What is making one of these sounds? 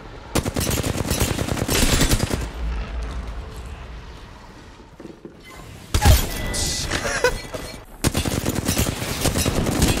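A rapid-firing gun shoots in quick bursts.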